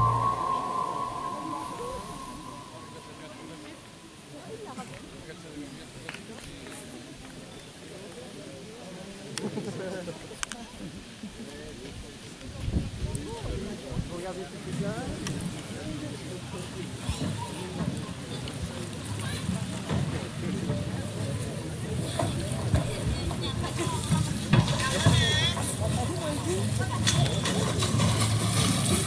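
Young women talk with each other in the open air, some way from the microphone.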